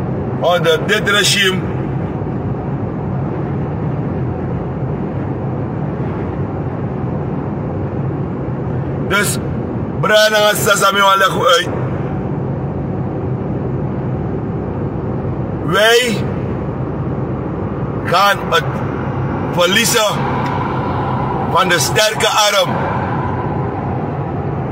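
A car engine and road noise hum steadily inside a moving car.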